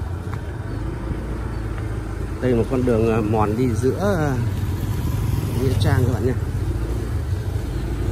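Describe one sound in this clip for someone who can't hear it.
A motorbike engine hums as it rides past on a dirt road.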